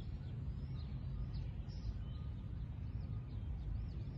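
A golf ball is tapped softly with a putter.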